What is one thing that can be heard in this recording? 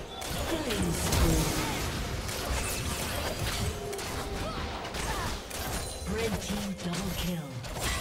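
Game spell effects whoosh, zap and crackle in a fast fight.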